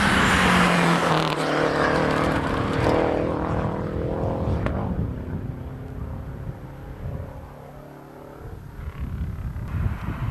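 A rally car engine roars past close by and fades into the distance.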